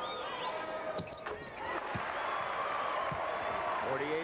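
A basketball thumps on the court.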